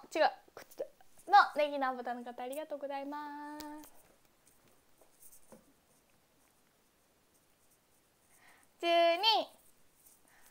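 A young girl speaks in a high, lively voice close to a microphone.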